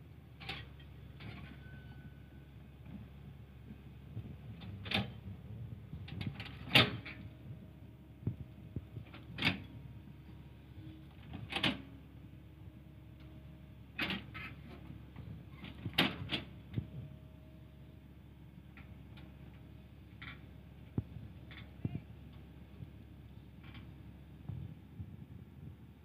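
Steel excavator tracks clank and knock while moving.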